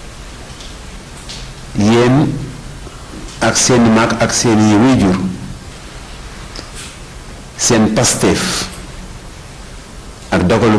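A crowd murmurs in the open air.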